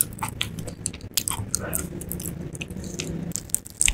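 Crispy batter crackles as fried chicken is torn apart by hand.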